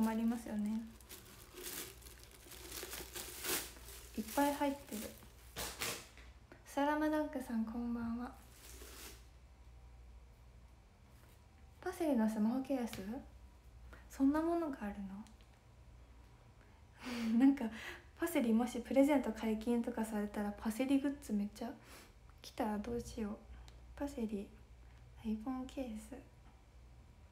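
A young woman talks softly and casually, close to a microphone, with pauses.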